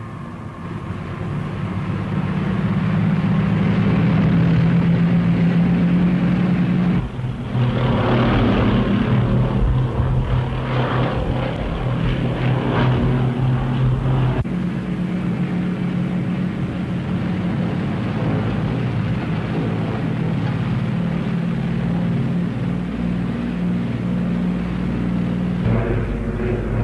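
Aircraft engines drone steadily and loudly.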